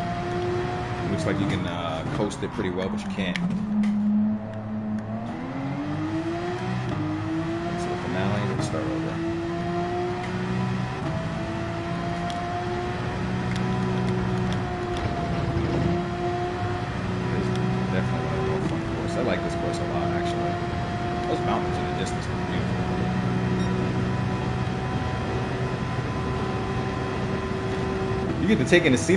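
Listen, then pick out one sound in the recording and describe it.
A racing car engine roars, dropping in pitch under braking and then climbing steadily as it accelerates through the gears.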